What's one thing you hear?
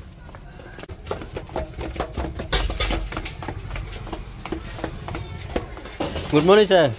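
Footsteps patter down concrete stairs.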